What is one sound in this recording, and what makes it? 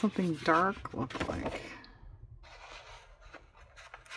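A sheet of paper rustles as it is laid down and slid into place.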